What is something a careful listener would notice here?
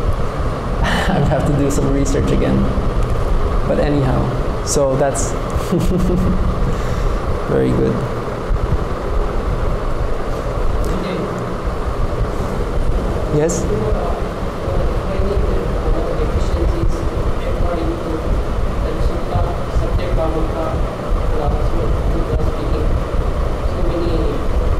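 A man speaks calmly into a microphone, heard through a loudspeaker in an echoing room.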